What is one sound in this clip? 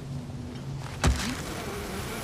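A spear thuds sharply into rock.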